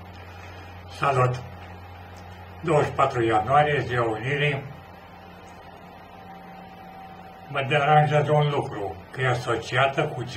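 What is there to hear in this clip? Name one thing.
An elderly man speaks calmly into a microphone close by, in short bursts with pauses.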